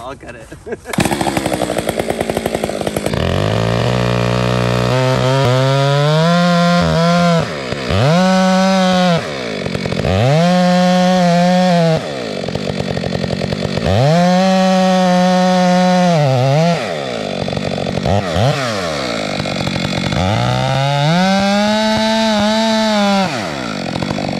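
A chainsaw engine revs up and down repeatedly, loud and close.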